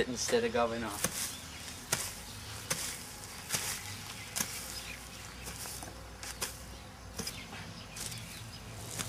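A hoe chops into soil with dull, repeated thuds.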